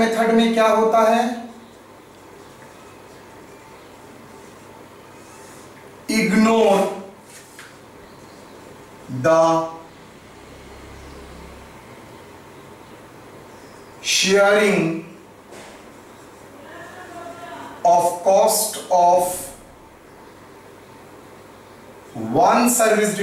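A man speaks in short bursts, calmly explaining, close by.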